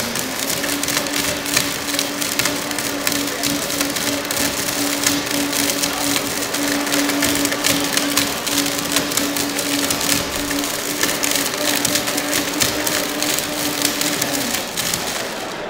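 A blender whirs loudly, grinding and rattling something hard.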